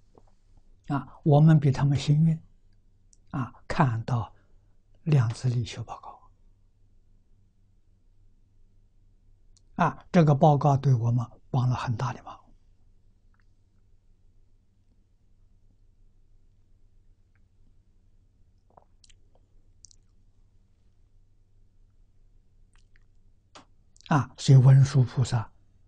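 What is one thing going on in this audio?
An elderly man speaks calmly into a close microphone, in short phrases with long pauses.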